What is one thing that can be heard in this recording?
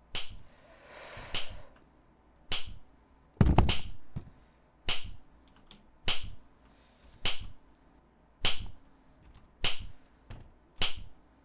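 Footsteps tap at a steady walking pace.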